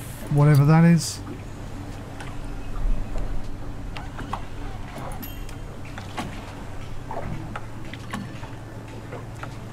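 A boat engine hums steadily at idle.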